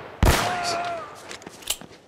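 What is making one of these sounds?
A pistol fires a sharp shot.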